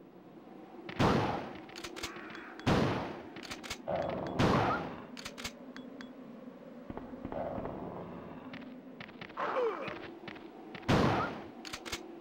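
Loud gunshots boom one after another.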